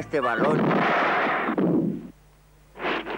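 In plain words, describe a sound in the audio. A cartoon character crashes into a tree with a loud clattering thud.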